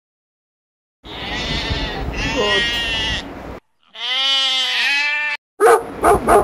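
Goats bleat loudly.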